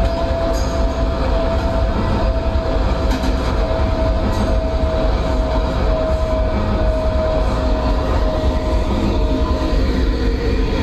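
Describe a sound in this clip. A train's motor whines at a steady pitch.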